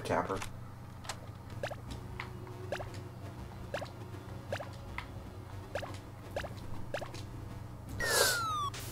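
Short electronic blips and bleeps play from a retro video game.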